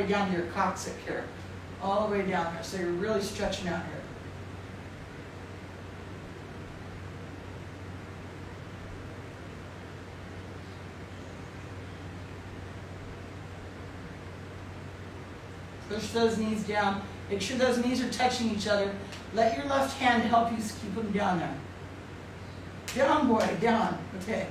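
A woman speaks calmly and slowly nearby, with long pauses.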